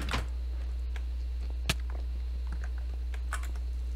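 A fire crackles softly in a furnace.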